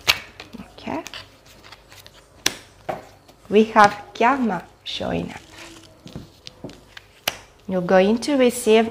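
Cards shuffle and tap against a table.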